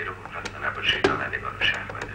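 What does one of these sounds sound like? A button on a tape recorder clicks.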